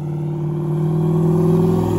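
Tyres screech as a car spins its wheels in place.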